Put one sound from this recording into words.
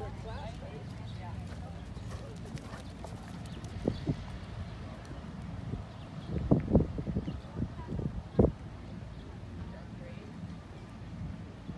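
Horse hooves thud on soft dirt.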